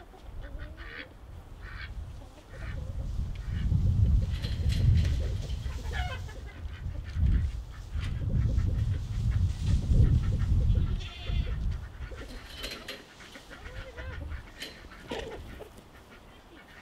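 Chickens cluck and call nearby.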